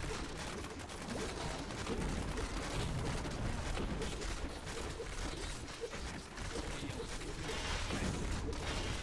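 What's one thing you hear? Magic spells crackle and burst in quick succession.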